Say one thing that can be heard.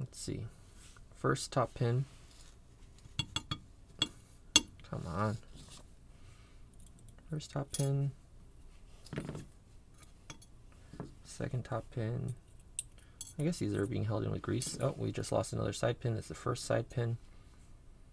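Small metal parts click and tap against each other.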